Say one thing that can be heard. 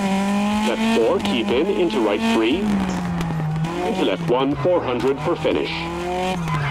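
Tyres screech in a skid through the turns.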